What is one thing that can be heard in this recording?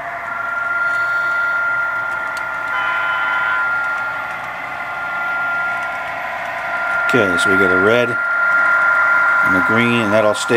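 Model train wheels click and rattle along the track.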